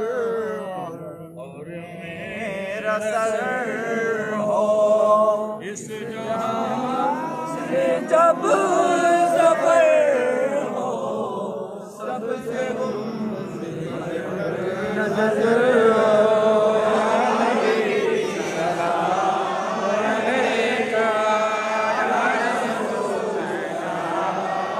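A crowd of men chants together in unison, close by.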